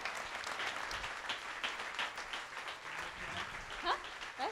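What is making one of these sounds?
A crowd claps in a large room.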